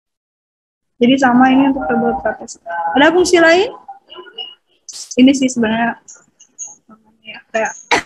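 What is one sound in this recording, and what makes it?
A woman speaks steadily over an online call.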